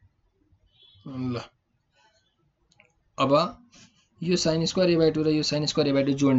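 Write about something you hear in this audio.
A young man speaks calmly into a close microphone, explaining.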